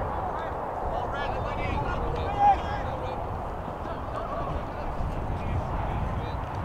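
Young men shout to each other across an open field, heard from a distance.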